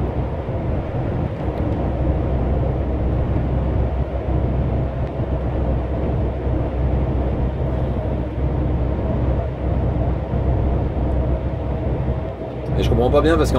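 A truck's engine drones steadily from inside the cab.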